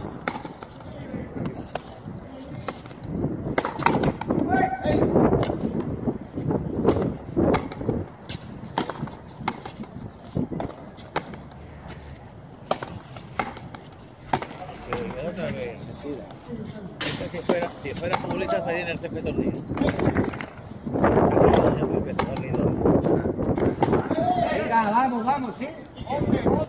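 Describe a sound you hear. A racket strikes a ball with a sharp crack.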